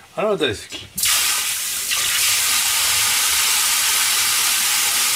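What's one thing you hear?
Water runs from a tap into a sink.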